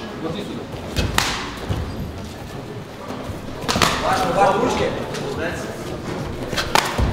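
Gloved punches land with sharp smacks.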